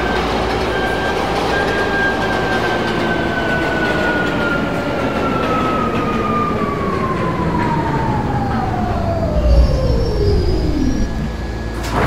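A subway train rumbles and its motor whines, falling in pitch as it slows to a stop.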